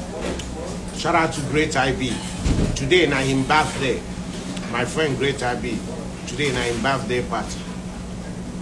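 A young man talks casually and close up.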